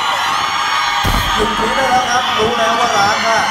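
A young man speaks through a microphone over loudspeakers.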